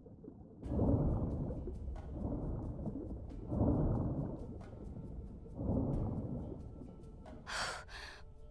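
Water surges and rumbles in slow, muffled swells as a swimmer strokes underwater.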